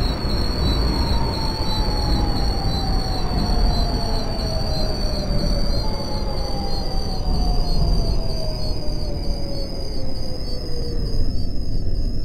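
A train's electric motor whines, falling in pitch as the train slows.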